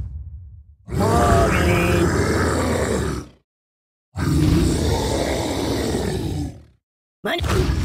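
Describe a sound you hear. A dinosaur roars loudly.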